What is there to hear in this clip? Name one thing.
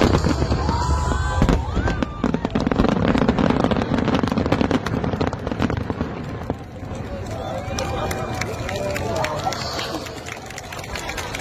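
Fireworks boom and crackle in rapid bursts.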